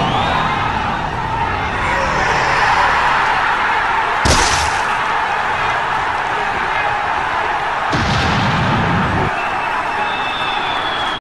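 A large crowd cheers and roars loudly in a big echoing hall.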